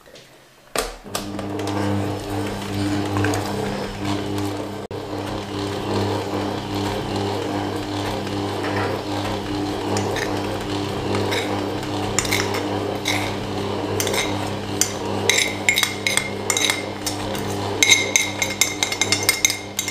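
An electric stand mixer hums steadily as it runs.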